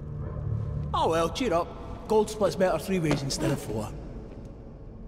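A man speaks with mocking cheer, close by.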